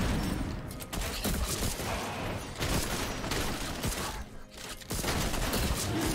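A large winged creature growls and roars.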